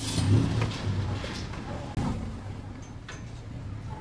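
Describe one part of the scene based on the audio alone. Soft dough is pressed and slapped against a metal counter.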